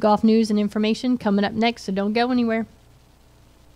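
A woman speaks brightly and close to a microphone.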